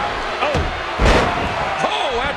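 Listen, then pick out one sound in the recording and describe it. A kick lands with a sharp smack.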